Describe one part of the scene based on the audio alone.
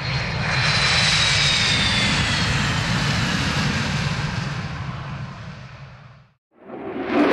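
A jet engine roars loudly as a fighter plane speeds away, its whine slowly fading.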